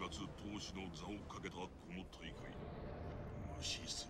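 A subway train rumbles past.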